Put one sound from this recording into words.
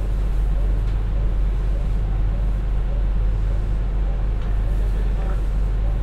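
A diesel train engine idles with a steady low rumble.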